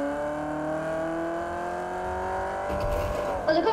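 A car engine hums and slowly rises in pitch.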